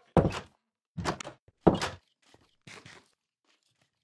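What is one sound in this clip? A game character eats with loud crunching chomps.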